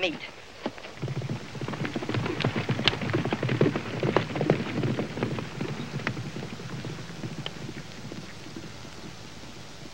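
Horses gallop across open ground, hooves thudding.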